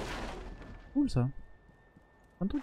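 A young man talks briefly and casually into a close microphone.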